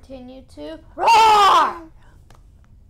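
A young woman shrieks with excitement close to a microphone.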